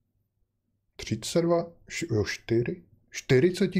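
A middle-aged man speaks calmly and close into a microphone.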